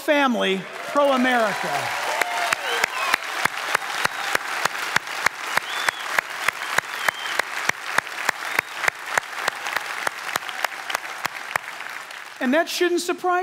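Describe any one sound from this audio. A large audience claps and applauds.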